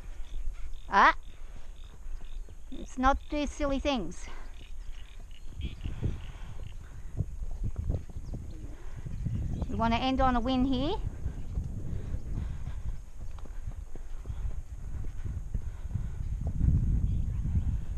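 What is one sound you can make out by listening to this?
A horse's hooves thud softly on dirt.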